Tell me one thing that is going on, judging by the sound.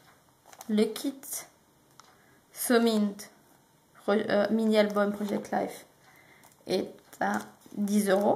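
A plastic packet crinkles as it is handled.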